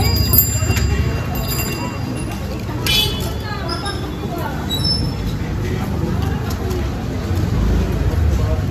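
Women talk nearby in a lively way.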